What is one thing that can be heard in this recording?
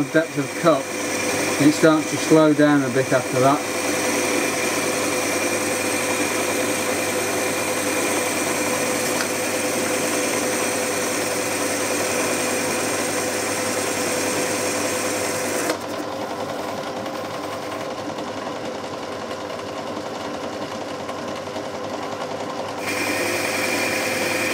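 A metal lathe runs with a steady whirring hum.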